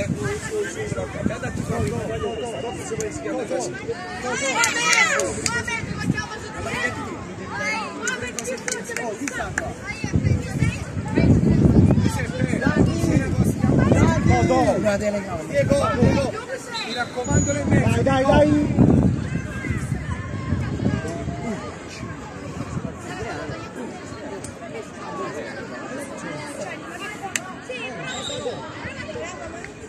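Young players shout and call out across an open pitch outdoors.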